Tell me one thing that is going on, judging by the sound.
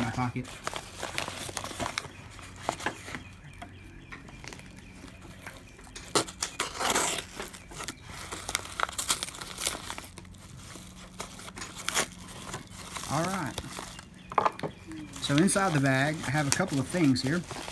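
Stiff paper crinkles and rustles as it is handled.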